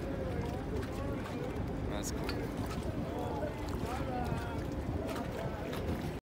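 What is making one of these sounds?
Water laps and splashes.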